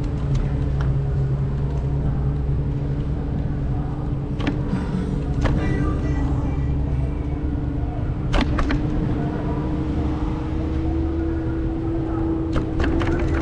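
A vehicle engine hums steadily while driving along a street.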